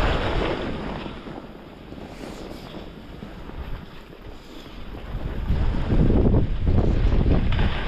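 Wind rushes and buffets past close by, outdoors.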